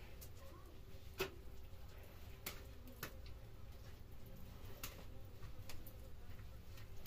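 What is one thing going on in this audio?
A trowel scrapes and taps against a plastered wall.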